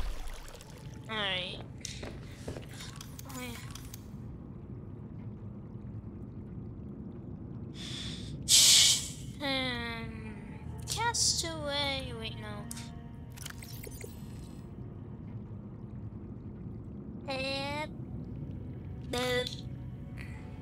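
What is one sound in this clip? Short electronic chimes sound with quick sliding tones as menus open.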